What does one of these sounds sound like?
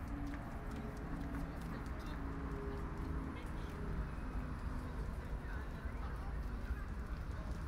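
Cars drive past on a nearby road.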